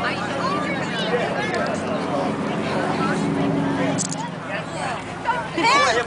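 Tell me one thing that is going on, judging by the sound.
A crowd of children and adults chatters outdoors.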